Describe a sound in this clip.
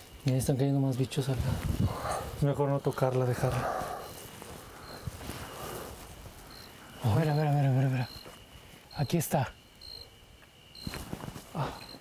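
Men talk with excitement nearby.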